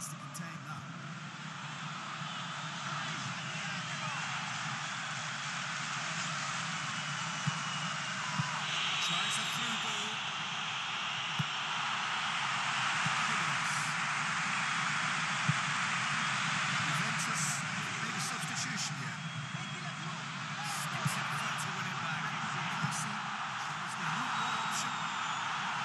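A stadium crowd roars and chants steadily throughout.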